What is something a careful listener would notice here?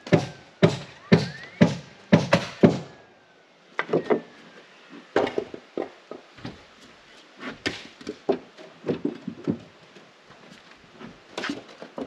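A hammer strikes wood in quick, repeated blows close by.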